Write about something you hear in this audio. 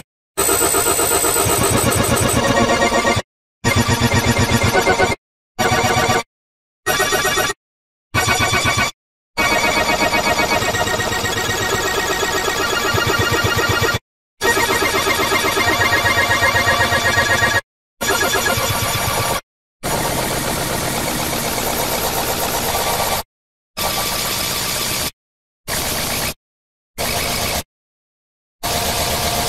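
Dense, layered electronic music plays, cutting out again and again in short silent gaps.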